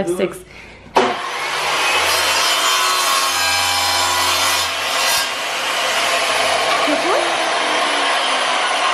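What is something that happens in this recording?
A tile saw runs with a steady, loud whine.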